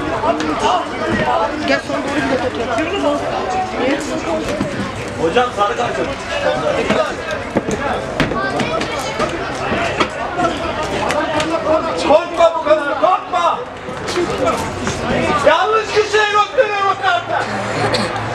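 Men nearby talk and shout with animation.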